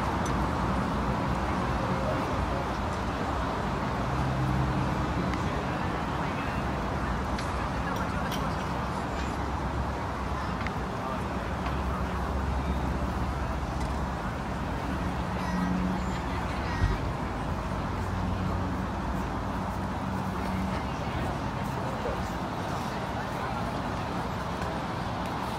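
Footsteps of passers-by shuffle on a pavement.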